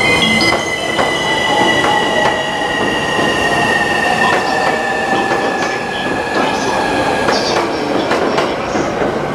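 An electric commuter train pulls away with a whining inverter motor.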